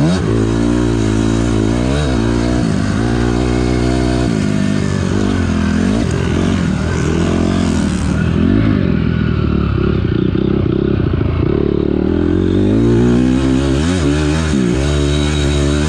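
A dirt bike engine revs loudly up and down as it shifts gears.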